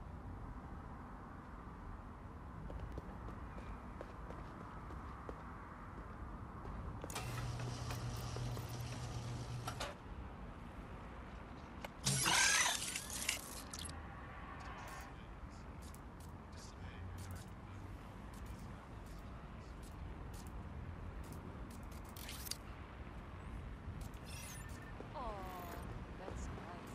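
Footsteps tap on pavement.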